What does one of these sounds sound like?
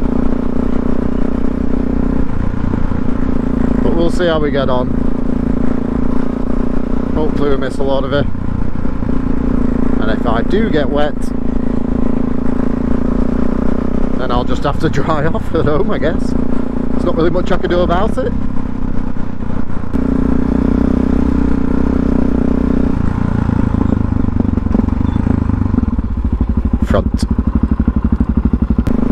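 A motorcycle engine hums steadily at close range.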